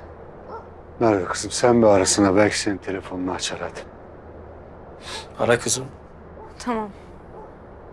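A middle-aged man speaks quietly, close by.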